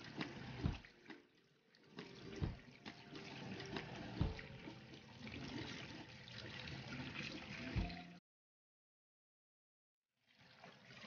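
Water runs from a tap and splashes.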